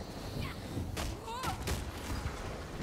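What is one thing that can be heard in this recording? A sword strikes sharply several times.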